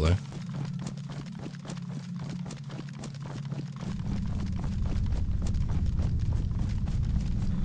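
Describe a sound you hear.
Footsteps swish and rustle through tall grass at a steady pace.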